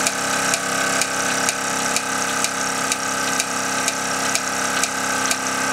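A toy steam engine runs, chuffing and ticking in a regular rhythm.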